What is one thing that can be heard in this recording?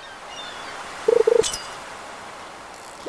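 A fish bites with a short splashy chime.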